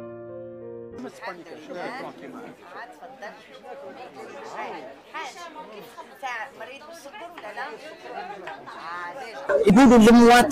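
Several people talk together.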